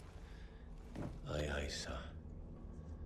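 A young man answers briefly and calmly, close by.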